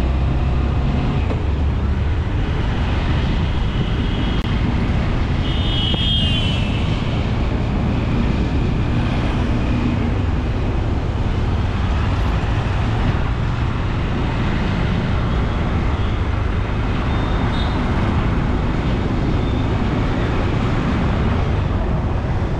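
Wind rumbles loudly across the microphone.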